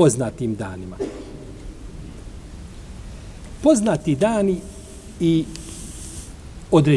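An elderly man reads aloud slowly and calmly into a microphone, with pauses.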